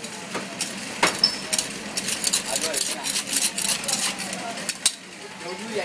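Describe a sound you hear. A metal tool scrapes and clinks against the inside of a clay oven.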